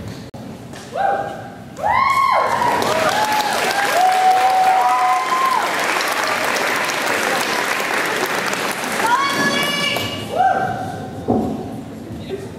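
A choir of young women sings in a large echoing hall.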